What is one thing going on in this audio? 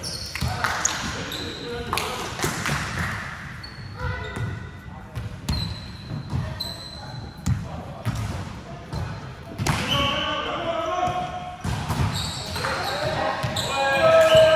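A volleyball thumps as it is hit.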